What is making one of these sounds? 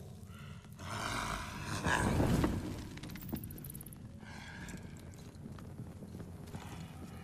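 A torch flame flares up with a soft roar and crackles.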